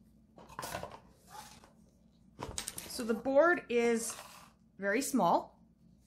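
A cardboard box lid slides open and lifts off.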